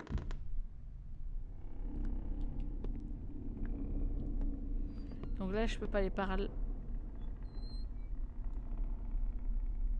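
Footsteps creak slowly across old wooden floorboards.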